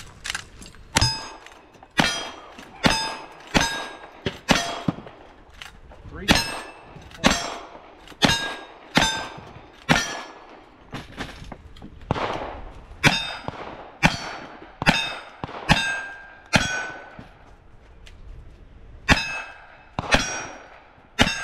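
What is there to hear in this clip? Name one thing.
Gunshots crack outdoors in quick succession, each followed by a short echo.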